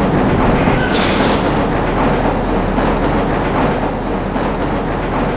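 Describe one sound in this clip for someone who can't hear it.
A train rumbles and clatters steadily along a track in an echoing tunnel.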